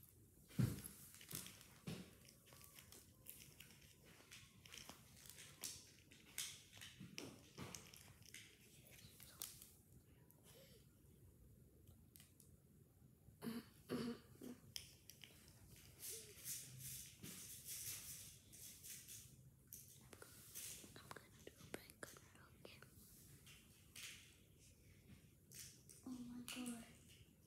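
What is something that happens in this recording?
A girl speaks quietly close by, with pauses.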